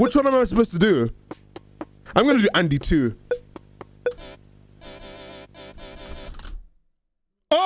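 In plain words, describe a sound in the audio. Chiptune game music plays and then cuts off.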